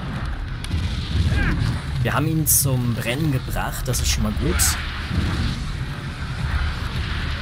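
Flames burst and roar in short whooshes.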